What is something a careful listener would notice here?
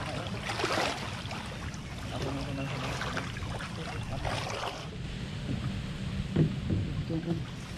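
Water splashes and sloshes nearby.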